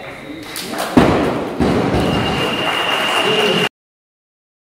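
A small group of people cheers and claps in an echoing hall.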